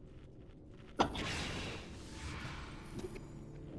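A magic spell bursts with a whooshing crackle.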